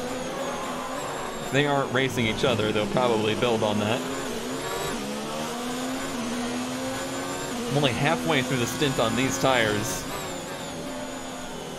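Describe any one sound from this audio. A racing car engine roars and revs up and down through quick gear changes.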